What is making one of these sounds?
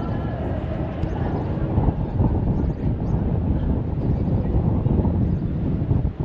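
People chat in the distance.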